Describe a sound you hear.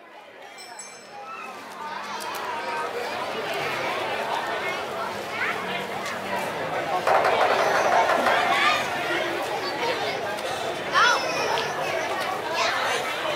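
A large outdoor crowd chatters and calls out.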